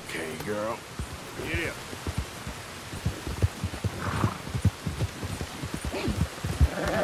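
A horse's hooves pound the ground at a gallop.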